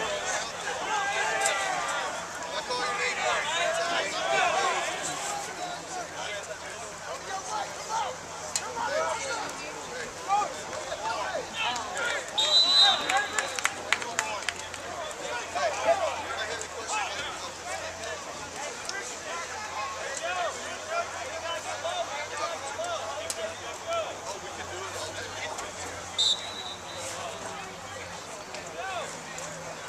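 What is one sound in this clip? A crowd of young men and boys chatters and calls out nearby, outdoors.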